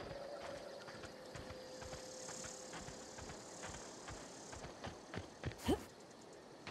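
Footsteps tread steadily over soft ground.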